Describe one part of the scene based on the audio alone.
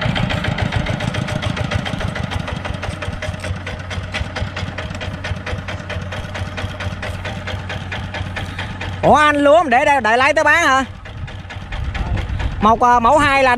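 A small diesel engine chugs steadily nearby.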